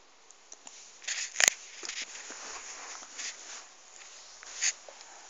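A hand rubs against soft fabric.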